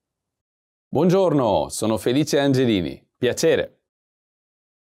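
A man speaks calmly and clearly, close to a microphone.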